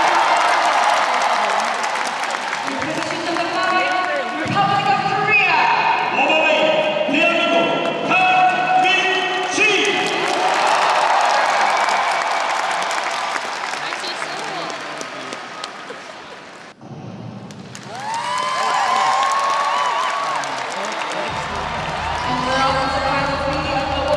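A large crowd cheers and applauds in an echoing arena.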